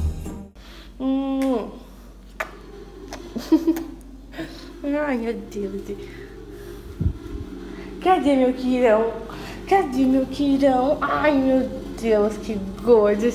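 A young woman speaks softly in a high, affectionate voice close by.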